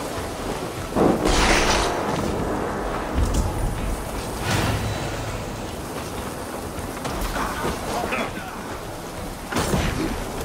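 Blades slash and strike into flesh in a fight.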